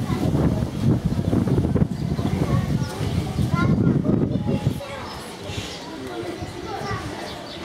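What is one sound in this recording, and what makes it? Children shout and play in the distance outdoors.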